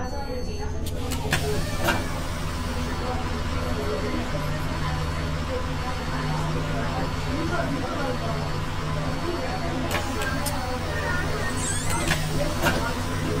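A bus engine idles with a low steady drone.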